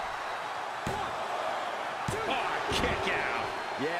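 Bodies thud heavily on a wrestling ring mat.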